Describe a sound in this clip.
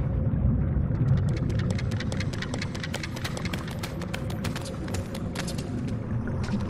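Quick light footsteps patter on a hard floor.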